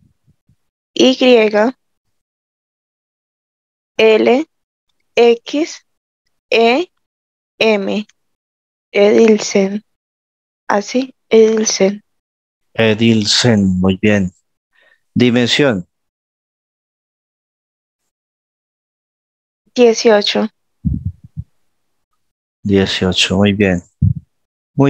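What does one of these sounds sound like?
A man speaks calmly into a headset microphone over an online call, in short phrases with pauses.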